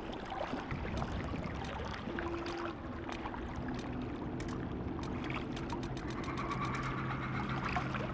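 Short menu clicks tick several times in quick succession.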